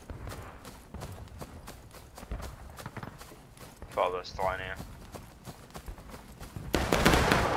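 Gunfire crackles in the distance.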